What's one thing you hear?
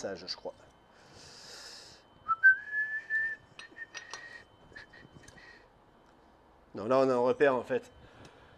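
Metal tools clink and tap against a motorcycle.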